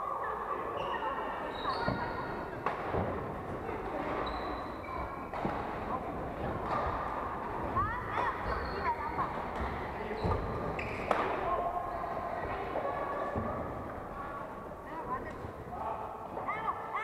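Sports shoes squeak sharply on a wooden court.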